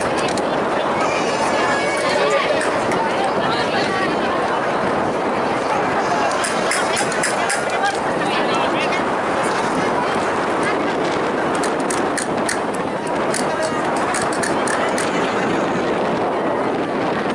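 Guitars strum a lively folk tune outdoors.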